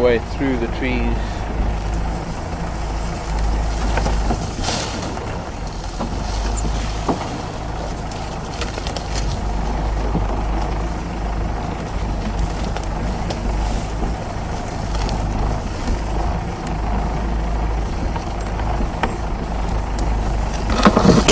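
A vehicle engine rumbles steadily while driving over rough ground.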